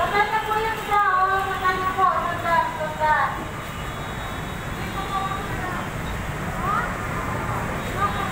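Traffic rumbles steadily below, outdoors.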